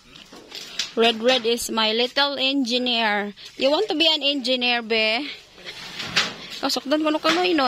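A young boy talks loudly and with animation nearby.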